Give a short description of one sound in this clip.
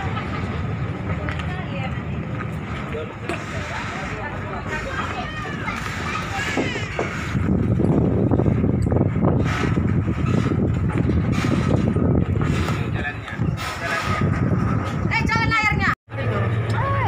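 Footsteps clatter on a metal ramp.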